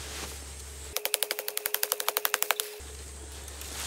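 A hand saw cuts through a thin sapling with quick strokes.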